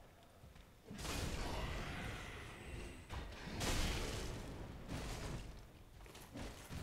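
Blades clash and slash in a close fight.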